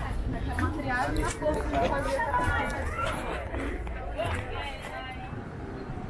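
Footsteps tread on a stone path.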